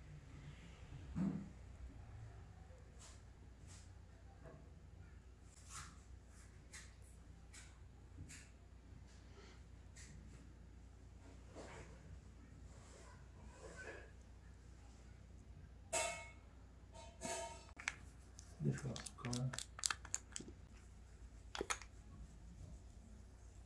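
Fingers tap and rub against skin close by.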